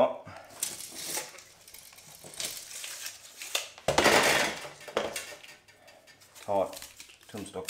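A metal shaft scrapes and clanks against a wooden table.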